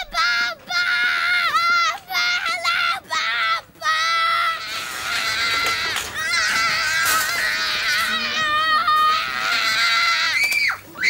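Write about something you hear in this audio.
A young boy screams loudly and shrilly, on and off.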